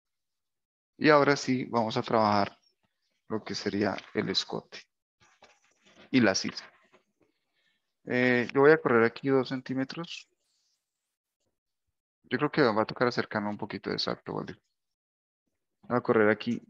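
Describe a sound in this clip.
A man speaks calmly into a close microphone, pausing often.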